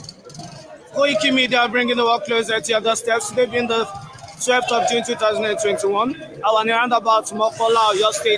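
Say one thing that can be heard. A crowd chants loudly in unison.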